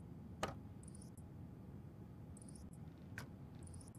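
A cable clicks into a socket.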